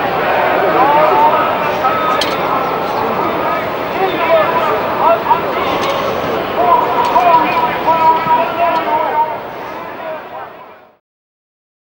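A large crowd chants and cheers outdoors, fading away.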